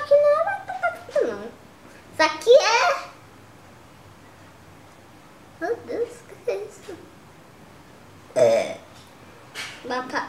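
A young boy talks close by with animation, in short bursts.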